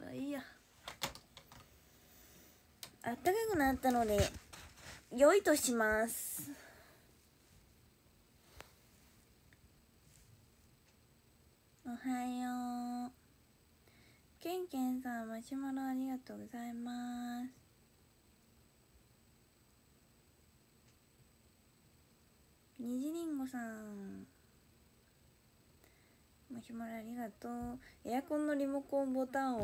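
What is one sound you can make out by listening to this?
A young woman speaks softly and close by, in short bursts with pauses.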